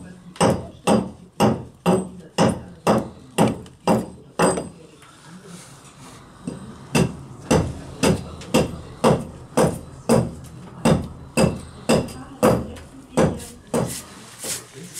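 A small axe chops repeatedly into wood.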